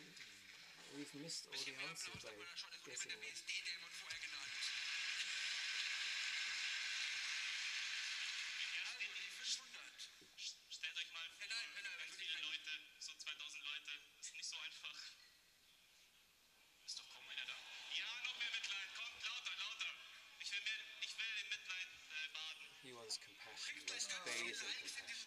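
A man talks into a microphone, heard over loudspeakers in a large echoing hall.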